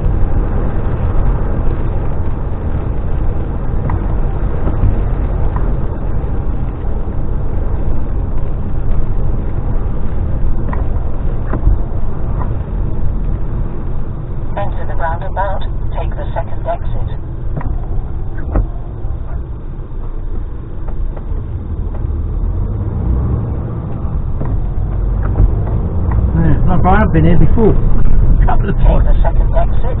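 A large vehicle's engine rumbles steadily as it drives along a road.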